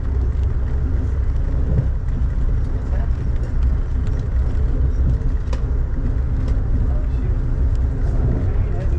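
A car engine rumbles low and steadily.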